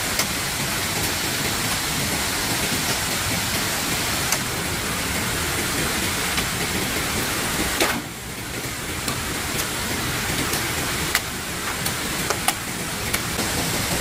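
A hoe scrapes and thuds into dry soil.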